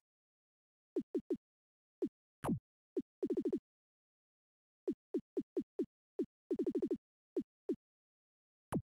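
Short electronic beeps sound as menu choices are made.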